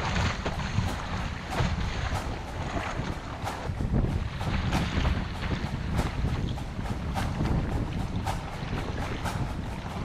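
Choppy waves slosh and splash against a kayak's hull.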